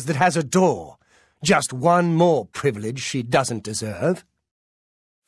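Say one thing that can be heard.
A man speaks calmly, close by, as if to the listener.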